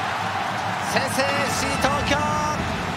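A football is kicked hard.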